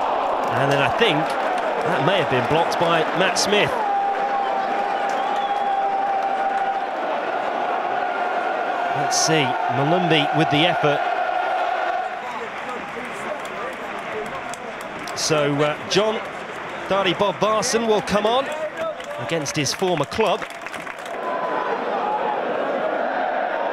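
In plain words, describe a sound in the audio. A large crowd chants and roars in an open stadium.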